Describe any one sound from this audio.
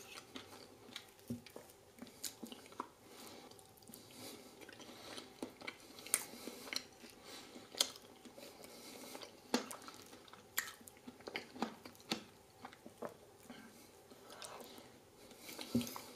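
A man chews food with soft, wet mouth sounds.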